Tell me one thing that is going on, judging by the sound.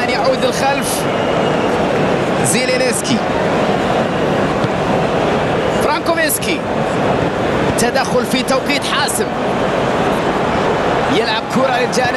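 Crowd whistles rise and fall from the stands.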